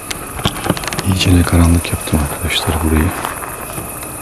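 A middle-aged man speaks quietly and close to the microphone.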